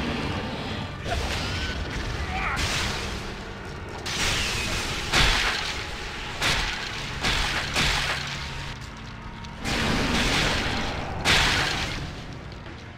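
Magic spells crackle and burst in repeated whooshing blasts.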